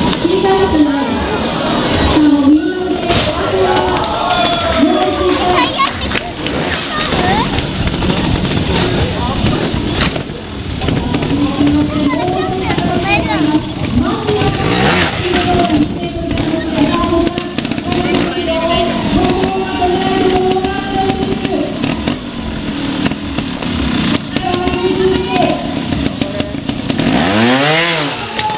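A motorcycle engine idles and revs in sharp bursts close by.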